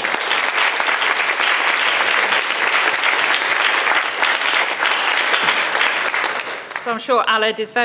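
An audience applauds in a large room.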